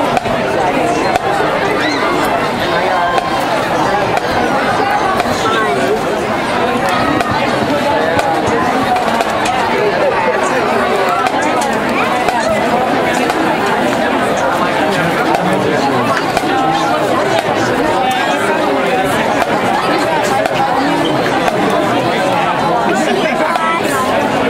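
A marching band plays brass horns outdoors.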